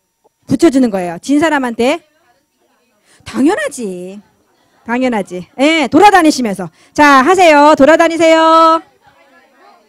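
A woman speaks animatedly into a microphone, heard through a loudspeaker.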